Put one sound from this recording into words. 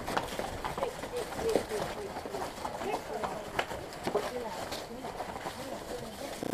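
Horse hooves thud and crunch on dry leaves along a trail.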